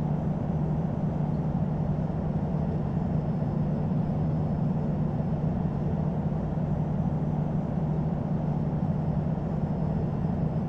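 Jet engines hum steadily at low power as an airliner taxis.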